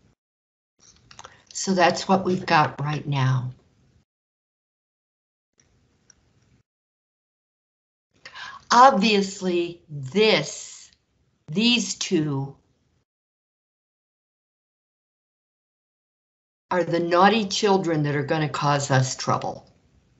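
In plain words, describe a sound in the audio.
An elderly woman explains calmly, heard close through a microphone.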